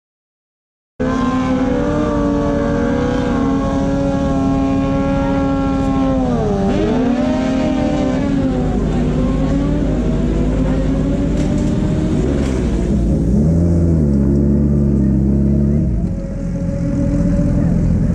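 A motorcycle engine rumbles loudly at idle close by.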